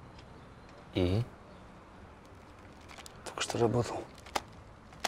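A man speaks briefly in a low voice, close by.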